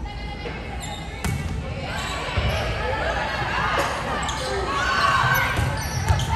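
A volleyball is struck with sharp slaps.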